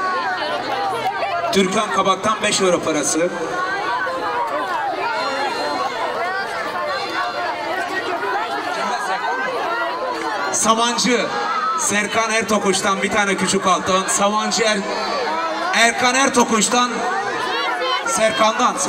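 A middle-aged man sings loudly into a microphone over a loudspeaker.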